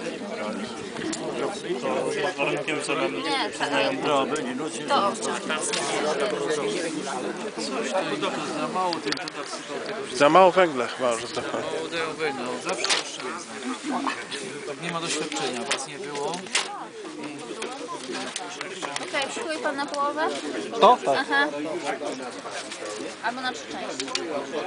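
Several adults talk with each other nearby, outdoors.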